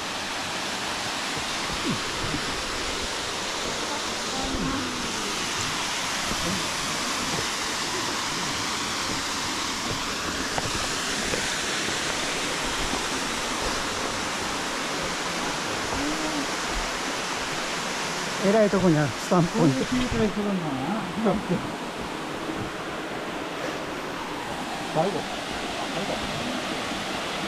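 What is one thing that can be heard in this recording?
A waterfall rushes and splashes steadily nearby.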